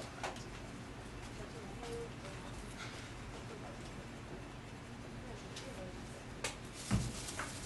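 A microphone knocks and thumps as it is handled.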